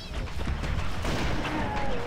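Energy weapons fire in rapid, crackling bursts.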